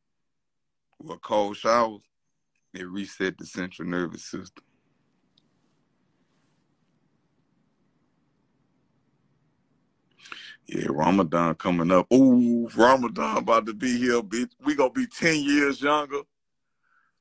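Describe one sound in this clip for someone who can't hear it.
A man talks casually and with animation close to a phone microphone.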